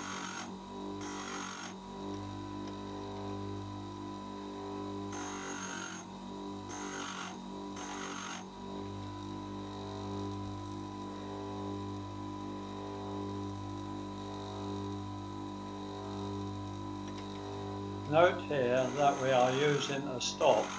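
A bench grinder motor hums steadily.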